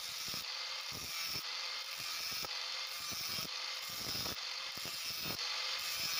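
An angle grinder's disc grinds harshly into a metal can.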